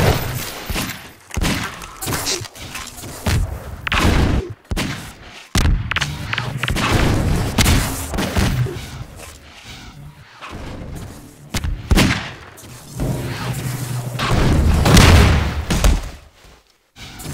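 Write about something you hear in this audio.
Guns fire in sharp bursts.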